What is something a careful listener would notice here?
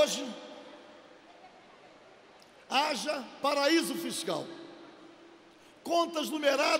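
An elderly man speaks with emphasis into a microphone in a large echoing hall.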